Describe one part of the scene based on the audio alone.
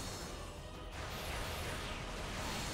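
A huge energy blast booms and crackles.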